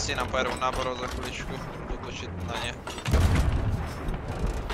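A cannon fires with a deep boom.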